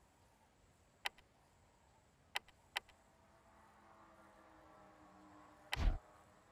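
Soft electronic clicks sound as menu choices are tapped.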